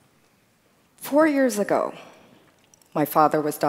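A woman speaks clearly into a headset microphone.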